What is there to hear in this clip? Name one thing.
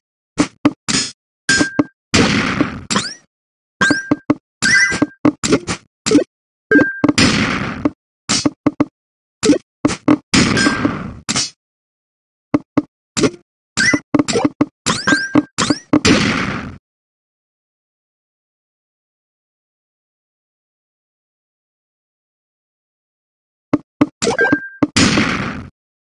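Quick electronic clicks tap as falling blocks move and lock into place.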